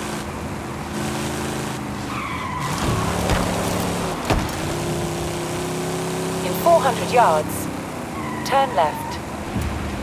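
A car engine hums steadily and rises and falls in pitch as it speeds up and slows down.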